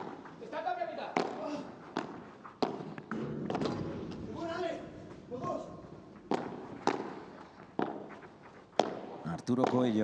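Rackets strike a ball in a fast rally, with sharp pops echoing in a large hall.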